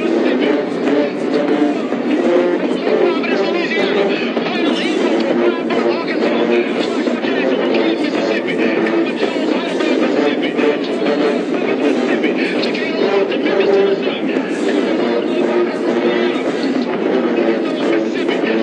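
A large marching band plays brass and drums loudly outdoors.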